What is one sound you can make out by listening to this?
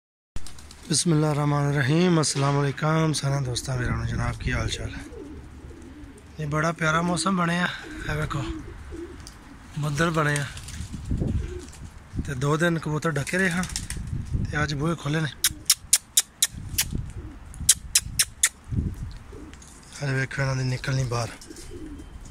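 Pigeons coo nearby.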